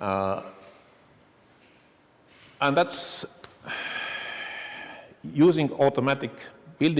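A man speaks calmly to an audience through a microphone in an echoing hall.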